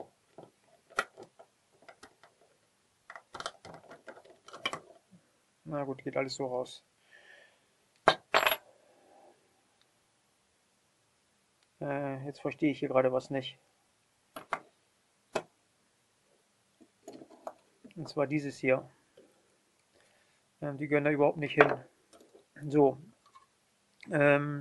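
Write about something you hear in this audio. Small metal lock parts click and clatter as they are handled.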